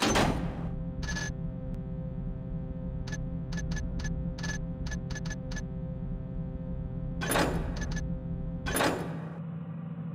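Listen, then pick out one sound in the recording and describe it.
Short clicks sound in quick succession as menu choices are selected.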